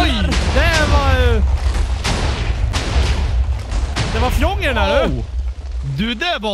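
Loud explosions boom and rumble one after another.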